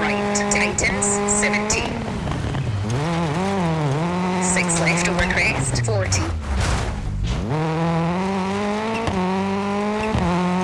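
Gravel crackles and sprays under a car's tyres.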